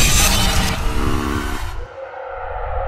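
A hairy creature roars loudly.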